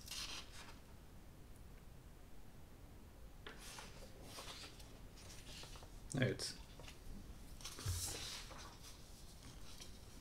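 A sheet of paper rustles as it is peeled back and handled.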